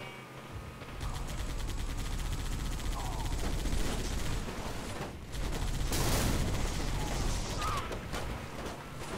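A mounted machine gun fires rapid bursts.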